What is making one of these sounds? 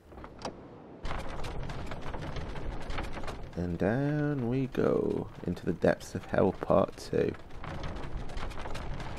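A wooden lift platform rumbles steadily as it lowers on chains.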